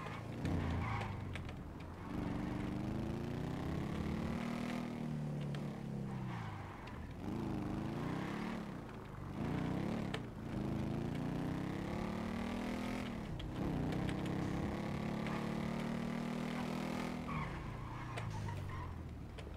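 A motorcycle engine revs up and down as it rides.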